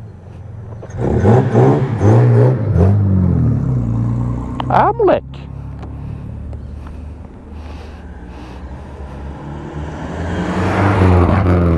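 An old car engine rumbles and revs loudly as it passes close by.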